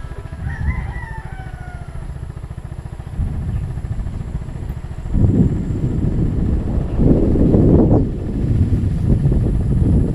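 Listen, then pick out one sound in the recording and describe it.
A motorbike engine rumbles steadily.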